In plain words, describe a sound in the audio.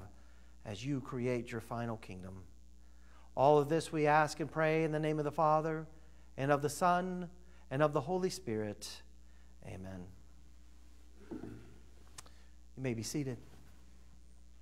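A man speaks slowly and solemnly through a microphone.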